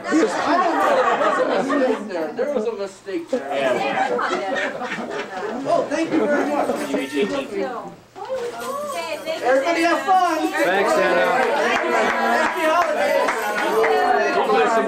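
Several people talk and laugh together in a lively room.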